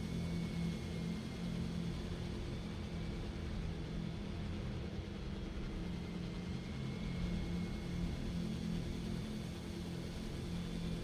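A drone's rotors hum steadily close by.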